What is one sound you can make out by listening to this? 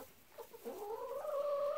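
A dog whines.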